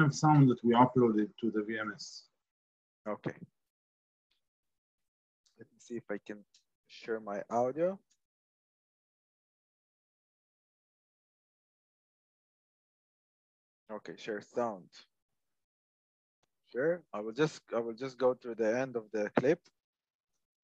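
A man speaks calmly through a microphone, in short bursts with long pauses.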